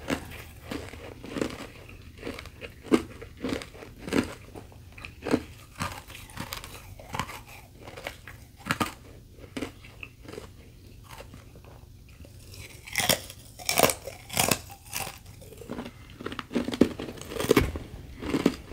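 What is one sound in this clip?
Wet chewing and mouth sounds come close up.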